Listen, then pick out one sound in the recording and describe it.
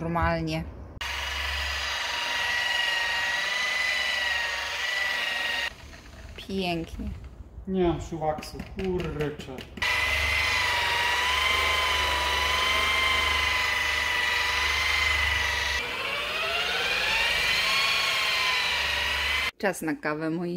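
A polishing machine whirs with a steady high whine, speeding up at times.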